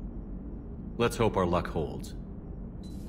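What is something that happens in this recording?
A man answers briefly in a low, calm voice.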